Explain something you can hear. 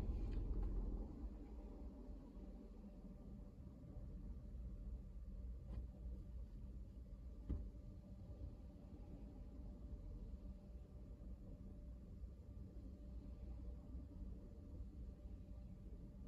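A car idles while stopped, heard from inside.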